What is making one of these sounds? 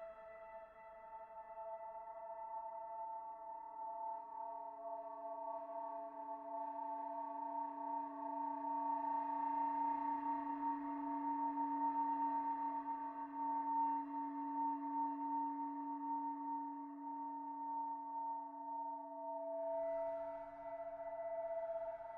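A synthesizer drones with steady electronic tones that slowly swell.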